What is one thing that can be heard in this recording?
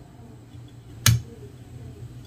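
Small spring pliers drop and give a sharp click.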